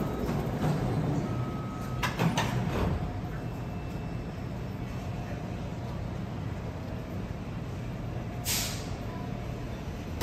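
A train idles with a low steady hum.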